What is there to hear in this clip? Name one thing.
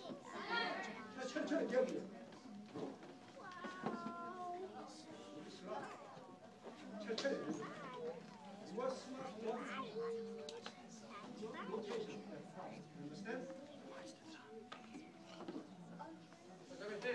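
Children and adults chatter nearby in a large echoing room.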